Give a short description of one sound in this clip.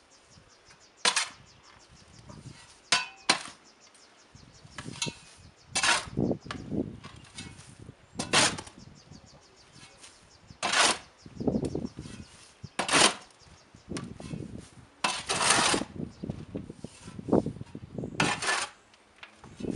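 A shovel scrapes and digs into soil again and again.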